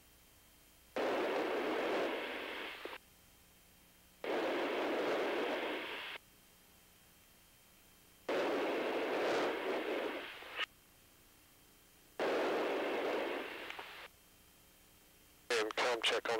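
A man speaks through a crackling radio in short bursts with pauses between.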